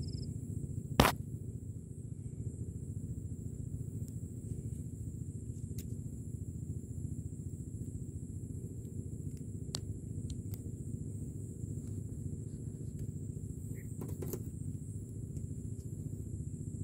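A gloved hand rubs and brushes against the microphone, close up.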